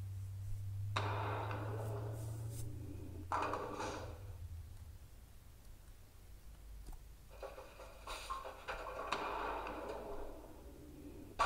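A bowling ball rolls down a wooden lane.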